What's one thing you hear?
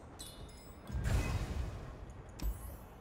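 A soft whoosh plays as a game menu closes.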